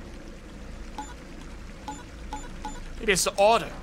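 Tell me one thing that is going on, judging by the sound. A switch clicks and beeps several times.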